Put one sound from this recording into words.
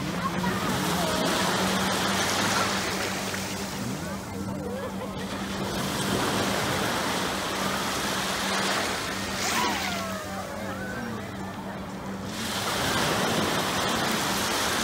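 A young girl chatters in a high voice.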